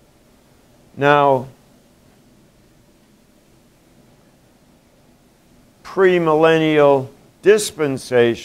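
An elderly man speaks up in short, clear bursts in an echoing room.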